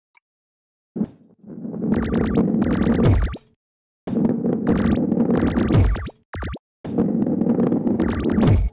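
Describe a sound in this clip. A ball rumbles as it rolls along a wooden track.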